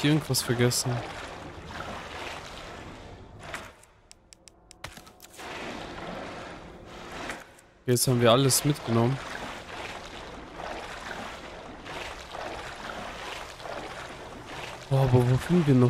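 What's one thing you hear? Footsteps splash and slosh through shallow water.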